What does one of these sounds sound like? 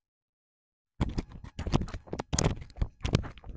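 Feet thud and scuff on dry ground.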